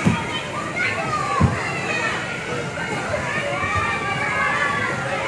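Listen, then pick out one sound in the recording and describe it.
Young children shout and chatter in a busy, echoing room.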